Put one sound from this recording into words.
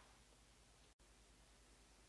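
A spray bottle squirts with a short hiss.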